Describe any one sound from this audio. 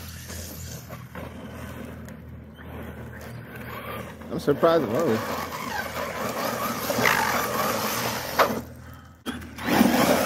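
A small electric motor whines and revs up and down.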